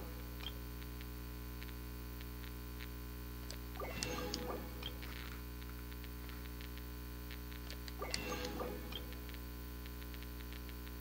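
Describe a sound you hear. Soft menu clicks tick repeatedly as a counter changes.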